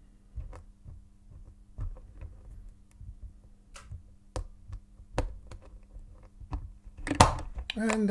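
Small metal tools click and scrape inside a padlock.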